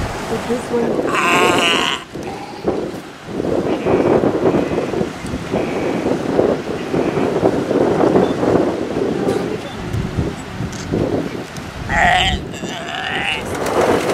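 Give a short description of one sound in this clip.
A sea lion barks loudly nearby.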